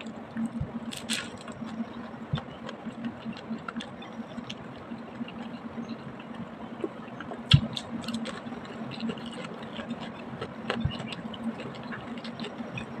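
A woman chews a crunchy fried spring roll close to the microphone.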